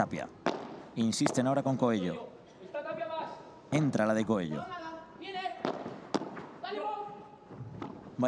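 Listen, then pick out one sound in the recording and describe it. A padel ball is struck hard with a racket and bounces with sharp pops.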